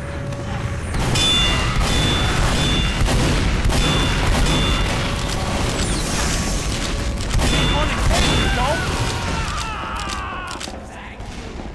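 Shotguns fire in rapid bursts.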